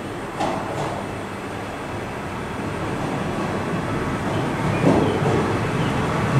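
A diesel train rumbles slowly closer, its engine growing louder.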